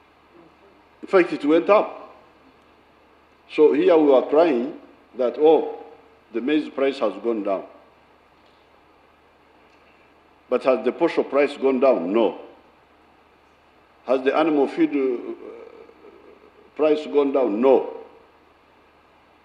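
An elderly man speaks slowly in short bursts with pauses, heard through a microphone in a large echoing hall.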